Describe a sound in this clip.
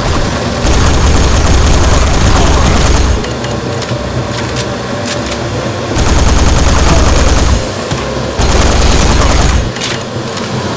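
A rapid-fire gun shoots in loud bursts.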